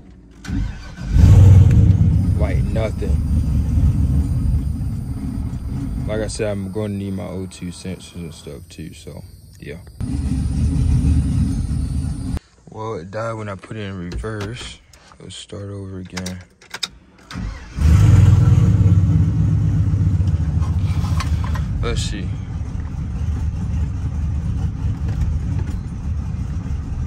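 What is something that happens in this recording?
A truck engine rumbles loudly nearby.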